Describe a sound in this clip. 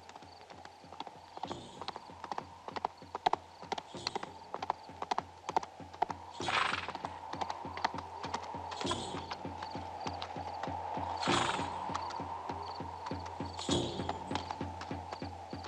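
A distant horse approaches at a gallop, hoofbeats growing louder.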